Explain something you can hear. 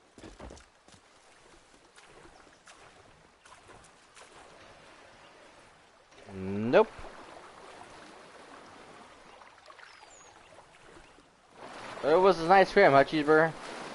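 Water splashes and sloshes as a swimmer strokes through it.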